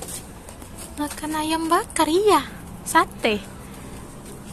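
A woman speaks to a baby in a high, sing-song voice nearby.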